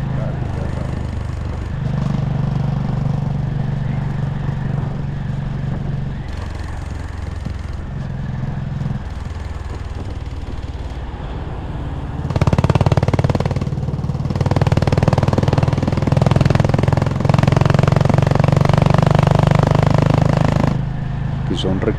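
A motorcycle engine rumbles steadily close by, its pitch rising and falling as it speeds up and shifts.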